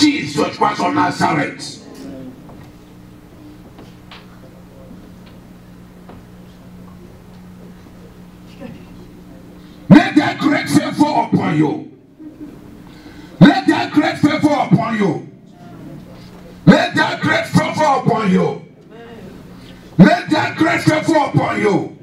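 A man preaches loudly and with animation through a microphone, in bursts with pauses.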